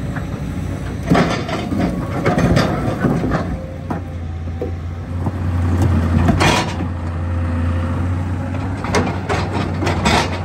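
An excavator bucket scrapes and cracks concrete slabs.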